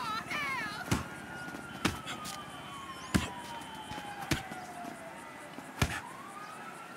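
Heavy punches thud against a body.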